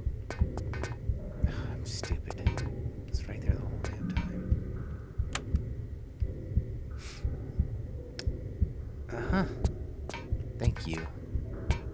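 Footsteps clang on a metal floor.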